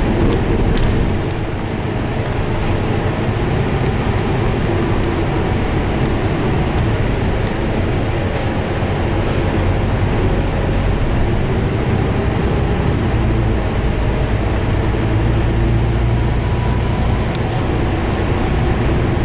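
A vehicle's engine hums steadily from inside as it drives along a road.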